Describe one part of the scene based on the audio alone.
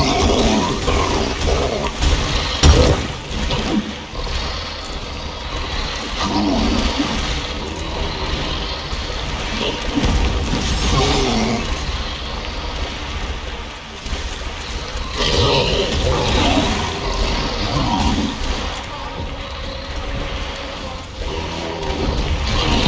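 A large creature growls and snarls.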